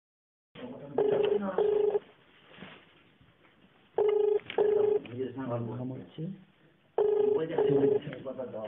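A phone rings in repeated double rings.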